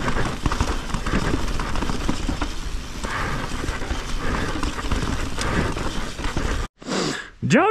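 Bike tyres rumble and crunch over a rocky dirt trail.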